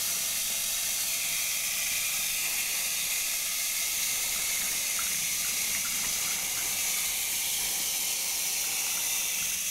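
Water sprays steadily from a shower head onto hair.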